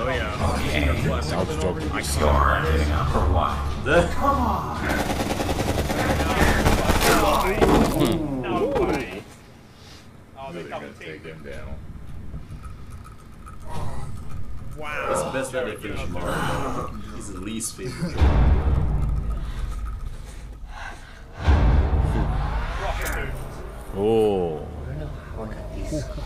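Several men react with animated exclamations through microphones.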